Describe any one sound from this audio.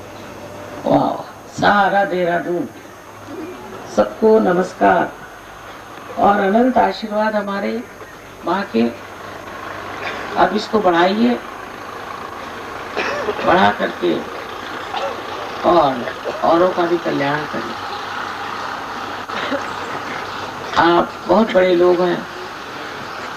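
An elderly woman speaks calmly through a microphone, with pauses between phrases.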